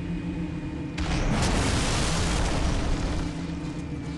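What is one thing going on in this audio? An explosion bursts with a loud roar.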